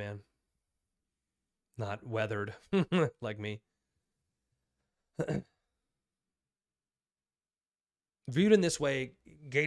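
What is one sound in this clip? A young man speaks calmly and close into a microphone, in short bursts with pauses.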